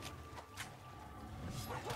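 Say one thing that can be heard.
A heavy axe blade swings and crackles with an electric burst.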